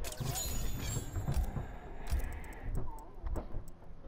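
Game menu selection sounds click as choices change.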